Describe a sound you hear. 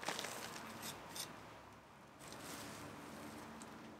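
A trowel scrapes through loose soil.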